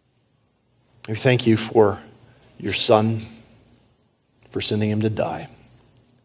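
A man speaks slowly and solemnly into a microphone, with pauses.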